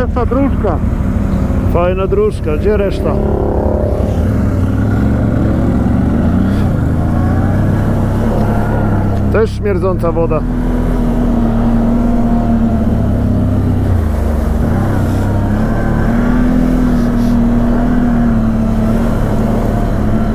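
A quad bike engine rumbles steadily up close, rising and falling in pitch.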